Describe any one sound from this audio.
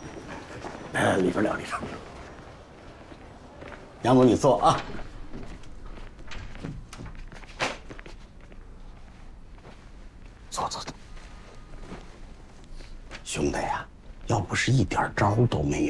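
A middle-aged man speaks eagerly and insistently, close by.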